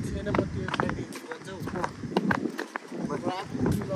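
Shoes scuff on stone steps.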